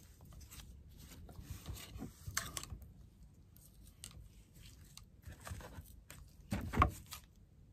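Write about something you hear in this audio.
Paper rustles and crinkles under fingers.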